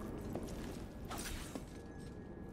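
Ice cracks and shatters with a burst of noise.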